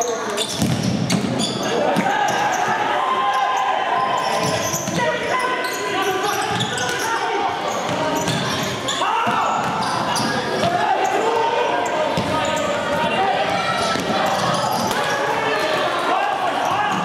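Young men shout to each other across an echoing indoor hall.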